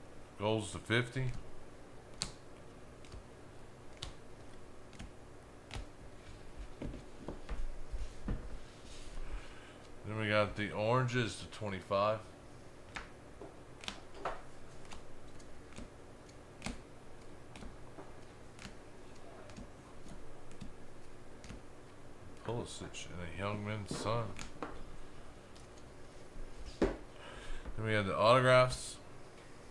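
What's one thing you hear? Plastic card cases click and tap against each other.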